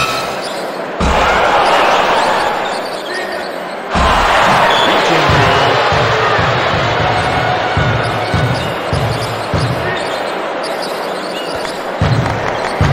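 A crowd in an indoor arena roars.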